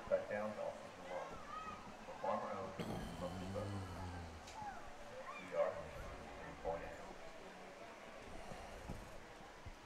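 Men talk and call out nearby outdoors.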